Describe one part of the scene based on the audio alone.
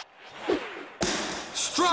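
A bat swishes sharply through the air.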